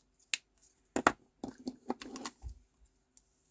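Plastic markers clatter as they are set down on a table.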